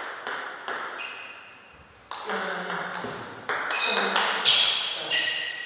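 A table tennis ball bounces on the table with sharp taps.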